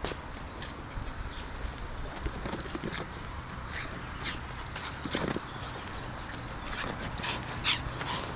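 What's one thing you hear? A ball thumps and scrapes along the ground.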